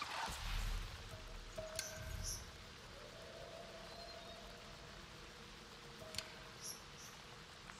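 Soft electronic menu chimes and clicks sound now and then.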